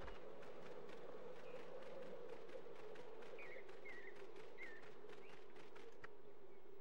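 Quick, light footsteps patter on the ground.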